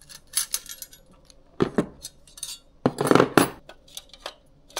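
A screwdriver clicks as screws are turned.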